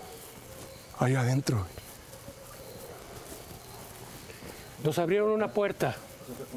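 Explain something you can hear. A man speaks loudly in short bursts nearby.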